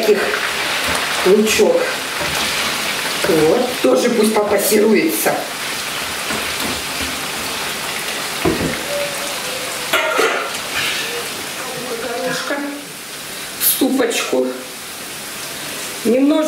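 Food sizzles as it fries in a pan.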